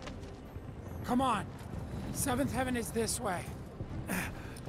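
A man speaks cheerfully and loudly.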